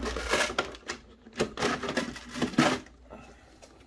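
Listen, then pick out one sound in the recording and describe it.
A plastic toy car body clicks and rattles as it is handled.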